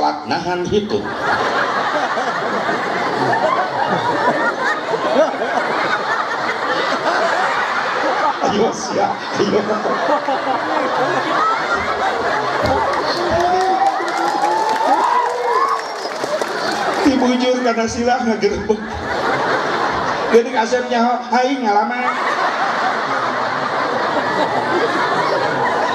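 A crowd laughs and cheers loudly.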